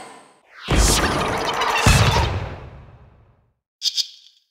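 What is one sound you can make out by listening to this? A bright magical burst whooshes and booms, then slowly fades.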